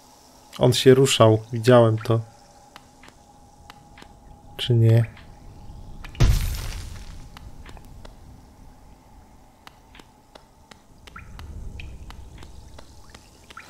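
Light footsteps tap steadily on a hard floor.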